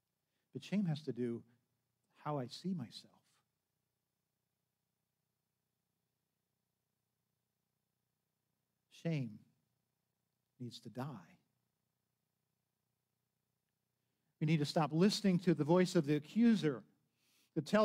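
An older man speaks calmly into a microphone, pausing between phrases.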